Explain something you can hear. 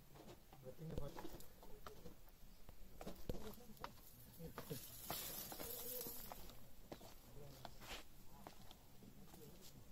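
Footsteps crunch on a dirt path outdoors.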